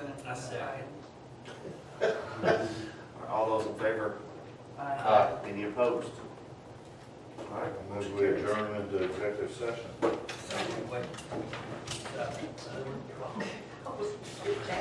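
A man speaks calmly in a room with a slight echo.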